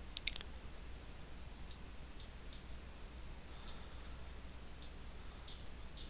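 Grains of sugar patter with faint, high ticks.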